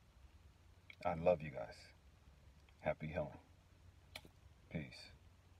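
A man speaks calmly and slowly, close to the microphone.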